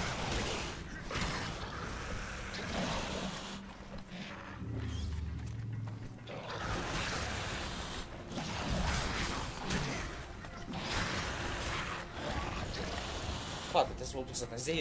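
Swords clash and slash in a noisy fight.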